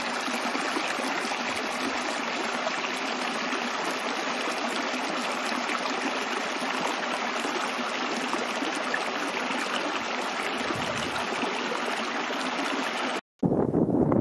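Water trickles and splashes steadily over rocks.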